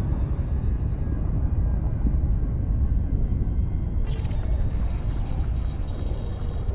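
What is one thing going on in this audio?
A spaceship engine drones with a deep, steady rumble.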